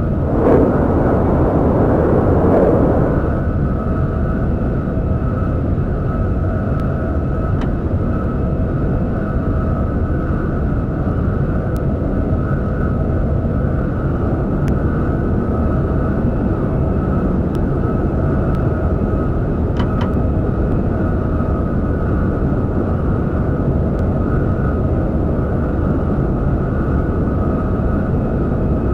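A train rumbles steadily at high speed through a tunnel.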